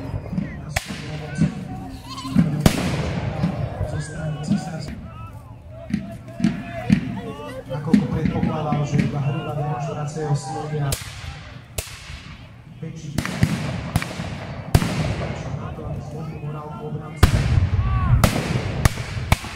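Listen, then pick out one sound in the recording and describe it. Muskets fire in loud sharp bangs that echo outdoors.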